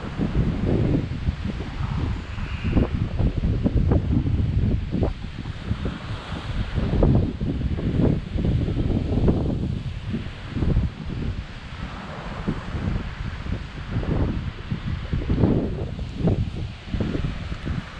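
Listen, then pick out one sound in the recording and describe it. Wind gusts buffet the microphone outdoors.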